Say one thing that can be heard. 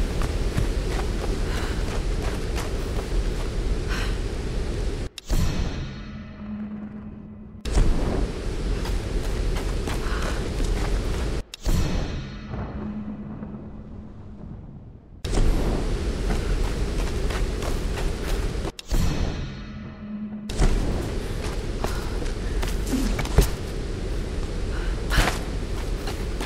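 Footsteps crunch on stone and grass.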